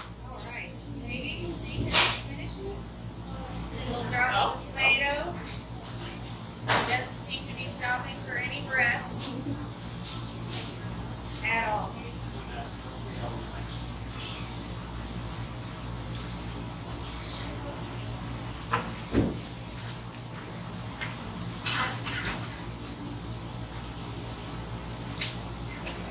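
Paper wrappers rustle and crinkle as food is handled.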